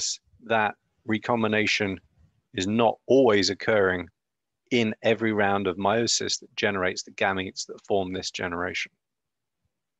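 A man speaks calmly and steadily into a close microphone.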